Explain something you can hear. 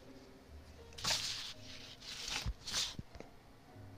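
Paper rustles as a sheet is moved.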